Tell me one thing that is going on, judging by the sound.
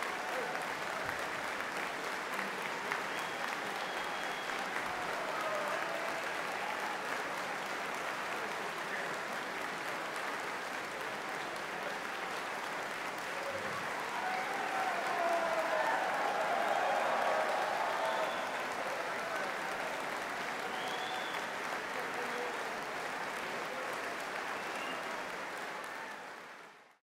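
Men and women in a crowd cheer and shout.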